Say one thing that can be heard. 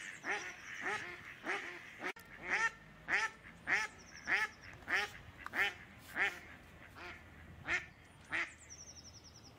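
A duck quacks loudly over and over, close by.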